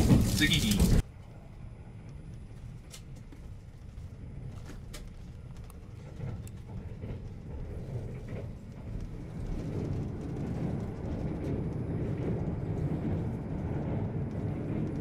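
A train hums quietly along the tracks, heard from inside a carriage.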